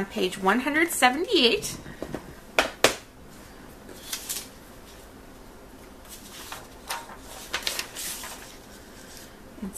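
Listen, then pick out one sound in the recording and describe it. Book pages and sheets of paper rustle as they are turned and handled.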